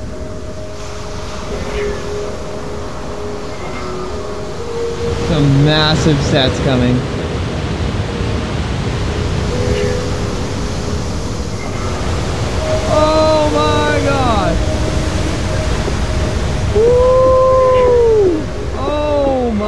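Heavy waves crash and roar against rocks.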